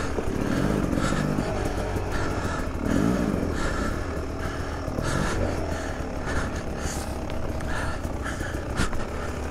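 A dirt bike engine idles and revs up and down close by.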